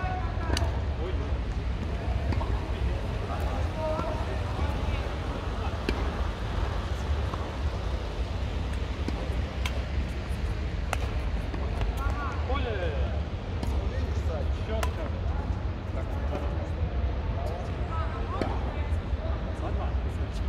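Badminton rackets hit a shuttlecock back and forth with sharp pops.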